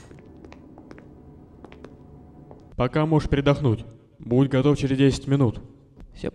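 Footsteps tap along a hard floor.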